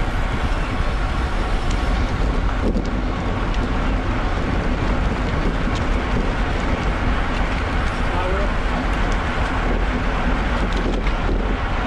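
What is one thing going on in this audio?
Wind rushes loudly past while riding outdoors.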